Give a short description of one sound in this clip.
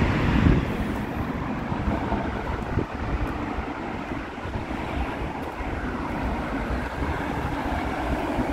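Traffic hums steadily along a nearby road.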